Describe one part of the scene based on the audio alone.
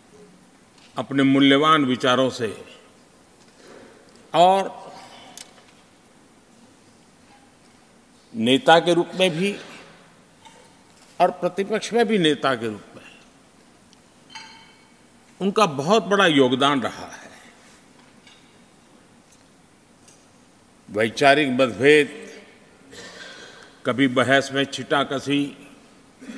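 An elderly man gives a speech in short, measured phrases with pauses, heard through a microphone in a large hall.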